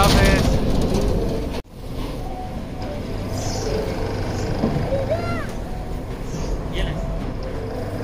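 A fairground ride whirs and rumbles as it swings.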